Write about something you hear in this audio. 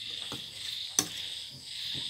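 A metal ladle clinks against the pan.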